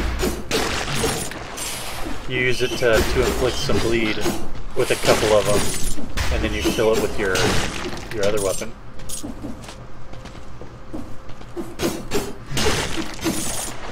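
Blades slash and hits thud in a fast video game fight.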